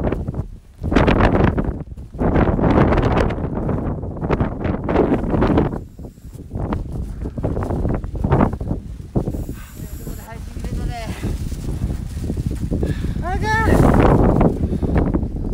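A young man talks close up, breathless and strained against the wind.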